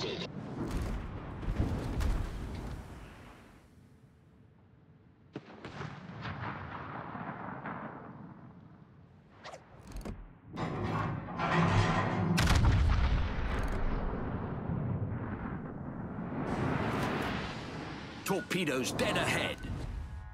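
Shells explode on impact with sharp blasts.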